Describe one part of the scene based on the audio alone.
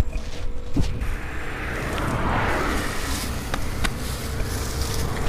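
Tall grass rustles and swishes as people push through it on foot.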